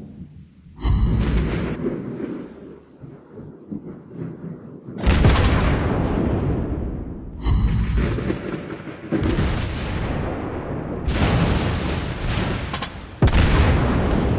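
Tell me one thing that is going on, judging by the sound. Shells explode with deep rumbling blasts.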